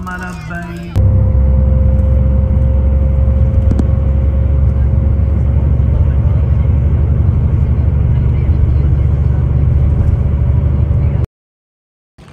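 A bus engine rumbles low and steady as the bus drives along a road.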